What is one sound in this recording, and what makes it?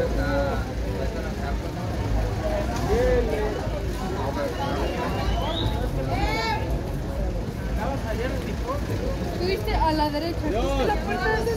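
Footsteps shuffle on a paved street.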